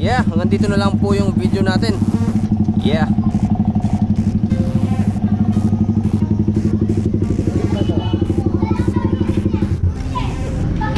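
A motorcycle engine runs close by with a steady rapid throb.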